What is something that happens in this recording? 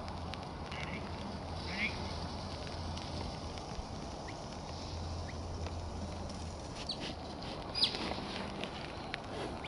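Sheep bleat faintly in the distance.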